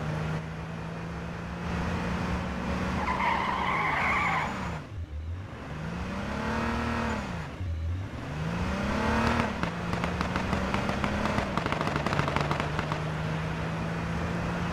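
A car engine hums and revs steadily.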